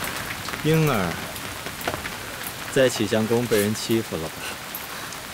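A young man speaks softly and gently nearby.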